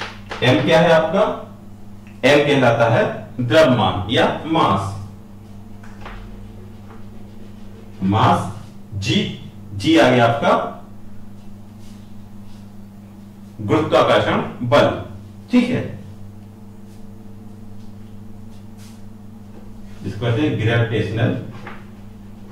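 A man speaks in bursts, explaining calmly, close by.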